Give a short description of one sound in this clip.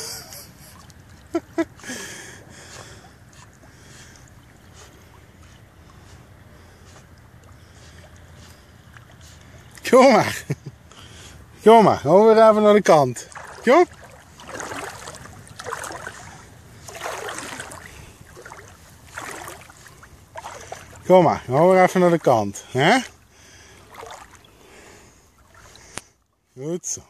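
A dog paddles through water with soft splashes.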